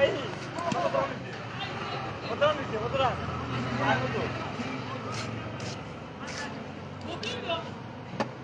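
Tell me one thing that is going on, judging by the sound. Young men talk and call out to each other outdoors.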